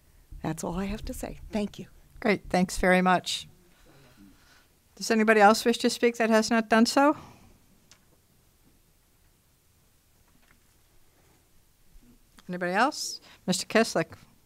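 A woman speaks in short phrases through a microphone.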